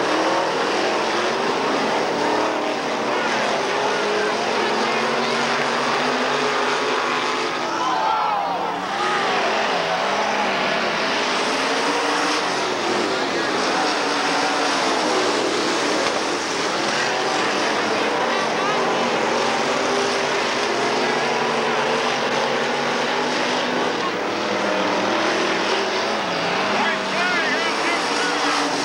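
Race car engines roar loudly as cars speed around a track.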